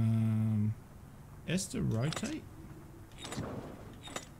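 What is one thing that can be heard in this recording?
A dial on a combination lock clicks as it turns.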